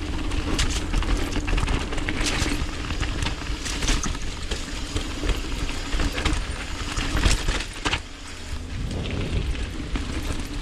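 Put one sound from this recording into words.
Loose stones clatter and rattle under bicycle wheels.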